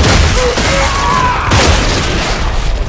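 A loud, wet explosion bursts and splatters, then fades.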